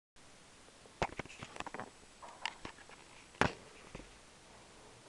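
A phone is knocked and fumbled with close by.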